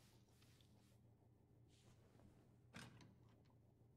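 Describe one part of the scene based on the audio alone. A door swings open.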